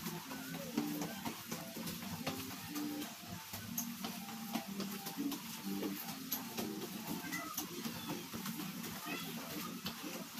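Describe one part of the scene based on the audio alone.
Running shoes patter on a tiled floor as a man jogs.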